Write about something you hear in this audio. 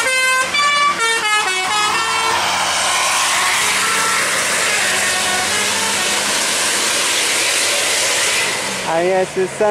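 A bus engine roars as the bus passes close by and drives away.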